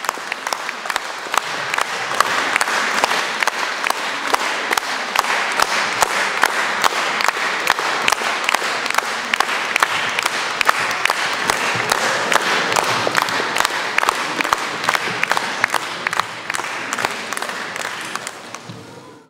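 A crowd claps along in a steady, fast rhythm in a large echoing hall.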